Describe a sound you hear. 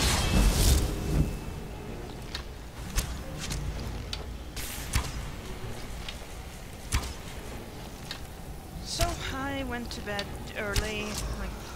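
A bowstring twangs.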